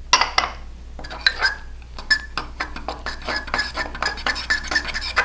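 A fork clinks and scrapes against a ceramic mug while beating an egg.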